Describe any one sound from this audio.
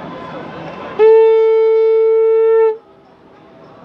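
A man blows a conch shell in one loud, steady, booming note.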